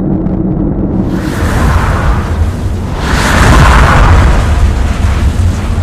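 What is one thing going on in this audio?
Spaceships rush past with a deep roaring whoosh.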